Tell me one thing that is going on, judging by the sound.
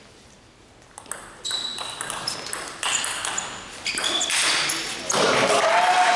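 A table tennis ball clicks back and forth off paddles and a table in a large echoing hall.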